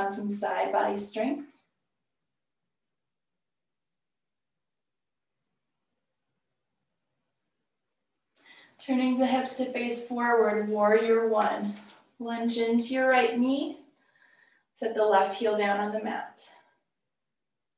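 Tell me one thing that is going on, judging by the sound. A woman speaks calmly and clearly close to a microphone.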